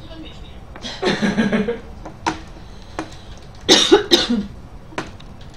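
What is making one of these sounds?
A young woman laughs and speaks close to a microphone.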